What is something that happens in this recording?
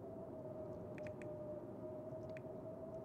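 Short menu clicks sound a few times.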